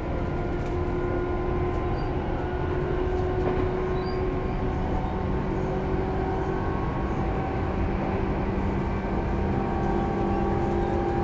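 Electric train motors hum with a steady whine.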